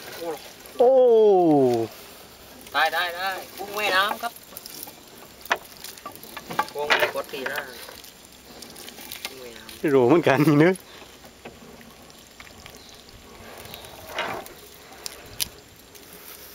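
A wet net rustles and drips as it is hauled in by hand.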